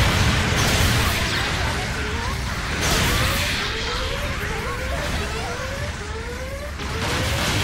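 Gunfire and explosions rumble in a video game battle.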